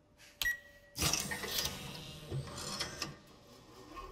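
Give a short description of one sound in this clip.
Robotic arms whir and clank into motion.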